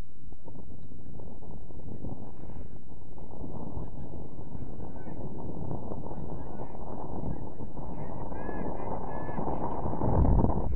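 Young players shout to each other across an open field, outdoors in wind.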